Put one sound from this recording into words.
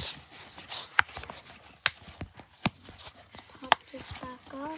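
Soft silicone bubbles pop with sharp little clicks as a finger presses them.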